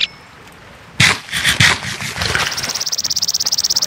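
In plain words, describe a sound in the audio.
A block of sand breaks with a gritty crunch.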